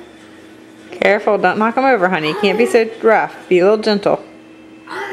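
A little girl laughs in quick bursts.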